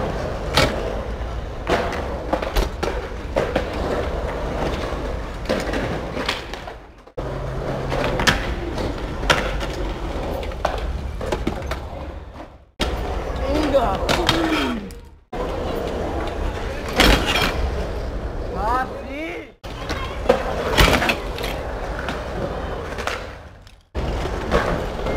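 Wheelchair wheels roll over concrete.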